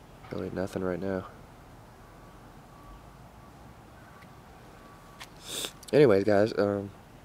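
A man speaks close by, in short calm phrases.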